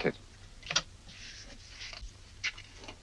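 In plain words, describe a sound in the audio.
Paper rustles as a sheet is torn from a pad.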